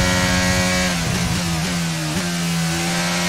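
A racing car engine winds down sharply as the car brakes.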